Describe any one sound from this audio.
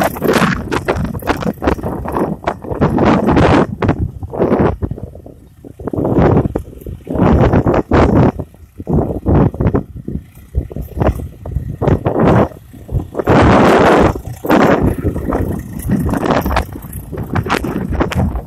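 Strong wind gusts buffet the microphone outdoors.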